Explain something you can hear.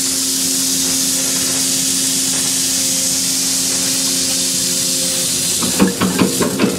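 Gravel pours from a chute and rattles onto a heap.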